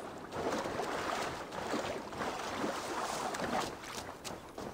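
Water splashes and sloshes as someone wades through it.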